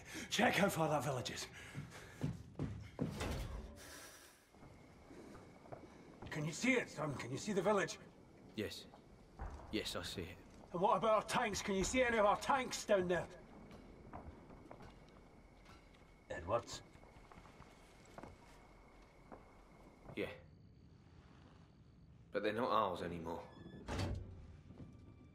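An older man speaks in a low, tense voice close by.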